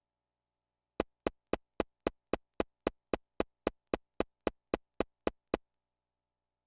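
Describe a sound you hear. A game character's steps tick as short electronic blips in a quick, steady rhythm, then stop.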